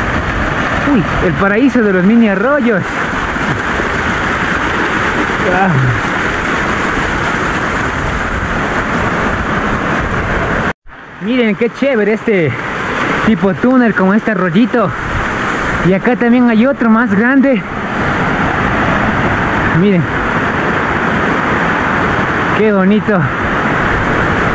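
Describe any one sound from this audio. Water splashes steadily down a rock face nearby.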